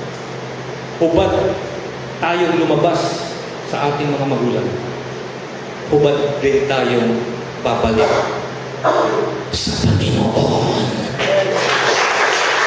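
A man speaks with animation into a microphone through loudspeakers.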